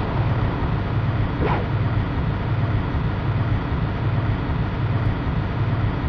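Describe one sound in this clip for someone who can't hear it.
A vehicle engine rumbles steadily with a low, throbbing drone.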